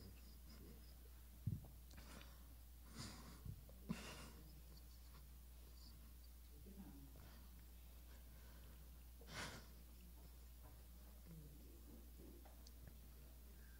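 A young man sobs softly close to a microphone.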